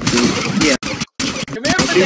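A gun fires a quick burst of shots.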